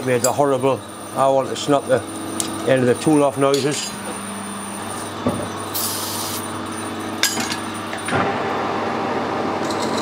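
A metal lathe hums steadily as it runs.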